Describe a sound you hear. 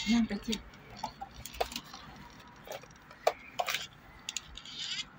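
A foil wrapper crinkles and rustles in small hands.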